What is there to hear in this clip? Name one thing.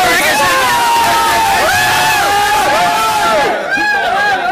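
A young man shouts excitedly close by.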